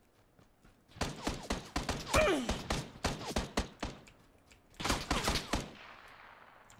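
Rapid gunshots ring out in loud bursts.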